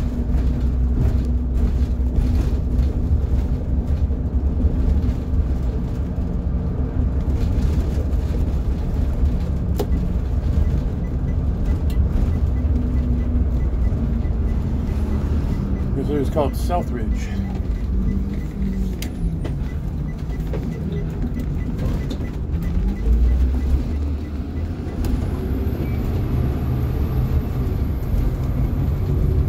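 A large vehicle's engine rumbles steadily as it drives.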